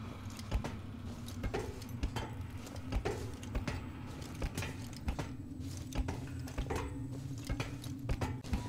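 Footsteps clang on a metal walkway at a steady walking pace.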